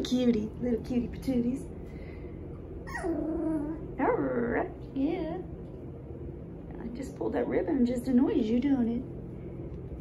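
A woman talks softly and affectionately close by.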